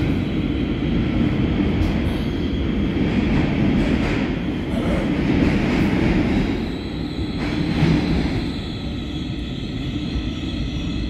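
A subway train rumbles loudly along the tracks.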